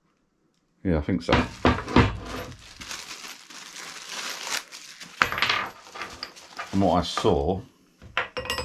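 Plastic wrapping crinkles and rustles up close.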